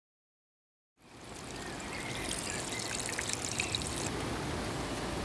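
Rain patters softly on stone outdoors.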